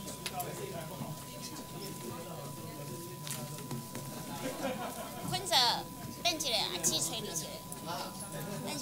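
Many men and women chatter at once in a large room.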